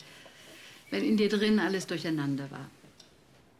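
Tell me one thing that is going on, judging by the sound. An older woman speaks warmly nearby.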